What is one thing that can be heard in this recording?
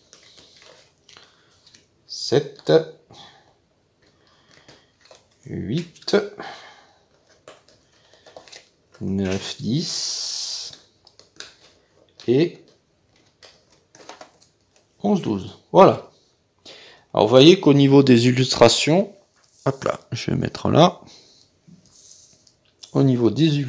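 Playing cards slide and tap softly on a wooden table.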